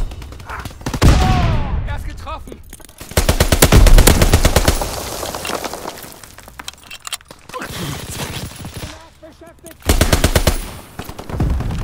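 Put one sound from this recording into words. A rifle fires in quick bursts of loud shots.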